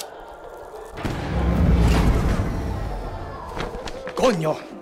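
An electrical device bursts and crackles with sparks.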